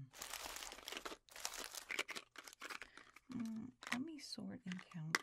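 Plastic candy wrappers crinkle and rustle under hands up close.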